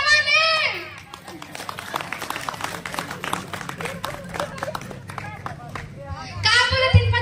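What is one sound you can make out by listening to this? A seated crowd claps their hands.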